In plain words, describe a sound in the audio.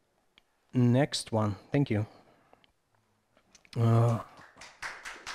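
A man speaks in short phrases through a microphone.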